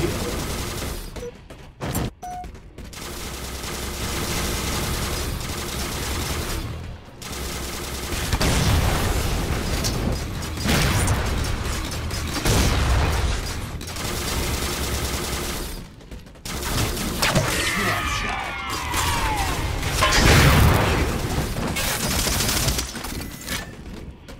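Gunfire from a video game rifle rattles in bursts.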